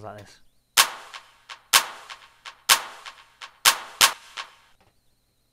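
Electronic drum hits play in a steady beat.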